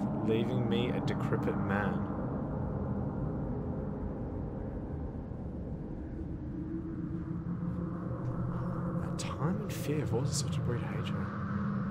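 A young man talks into a microphone close by, casually.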